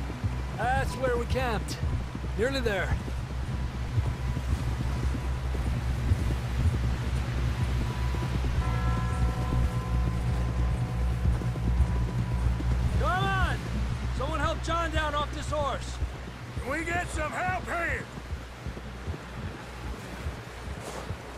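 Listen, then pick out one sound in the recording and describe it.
Horses gallop with heavy, rapid hoofbeats on snow.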